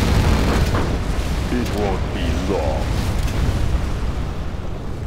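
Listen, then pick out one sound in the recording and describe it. Explosions boom and rumble heavily.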